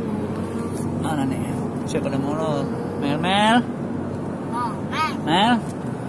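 A young child talks and laughs in a high voice.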